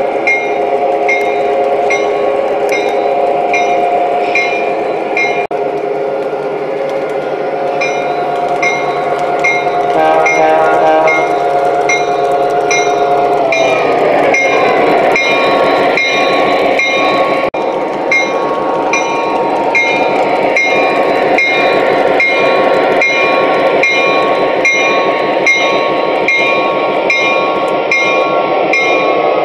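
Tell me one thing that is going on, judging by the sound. A model train motor hums steadily.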